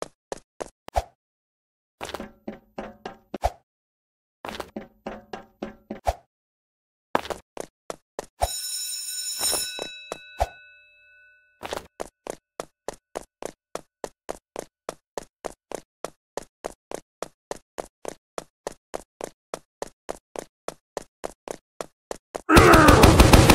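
Quick footsteps tap steadily on a hard surface.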